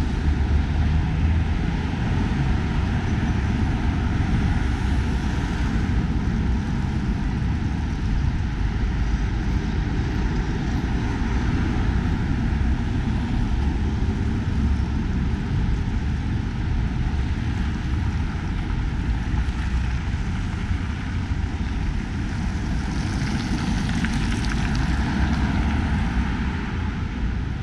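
Cars drive past on a busy road nearby.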